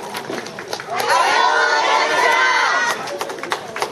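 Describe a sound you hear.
Young women shout a chant together outdoors.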